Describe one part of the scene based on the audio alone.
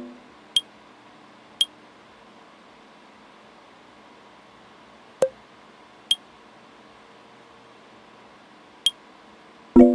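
Short, sharp clicks tick now and then.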